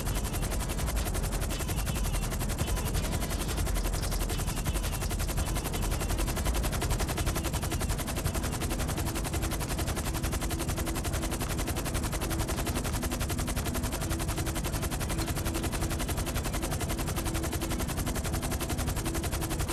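Helicopter rotor blades thump rapidly and steadily overhead.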